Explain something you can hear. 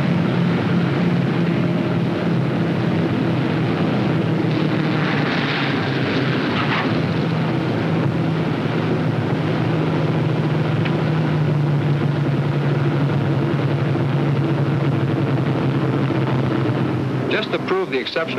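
Aircraft engines drone loudly and steadily as a plane takes off.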